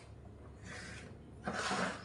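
A plate is set down on a table with a soft clink.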